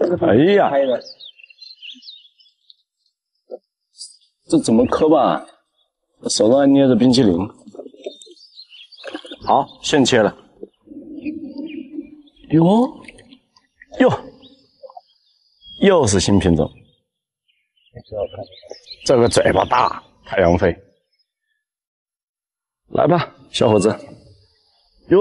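A man speaks with animation in short bursts, close to the microphone.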